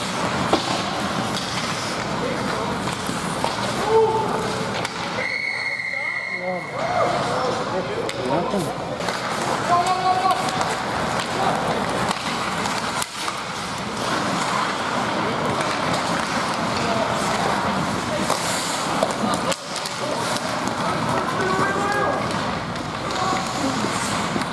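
Spectators chatter and call out around the rink.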